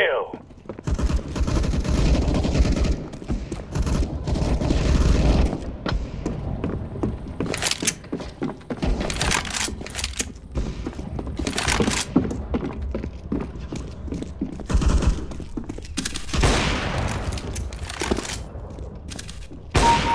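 Footsteps thud quickly across hard floors.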